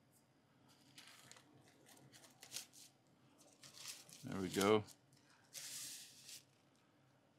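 Thin plastic film rustles and crinkles as hands handle it.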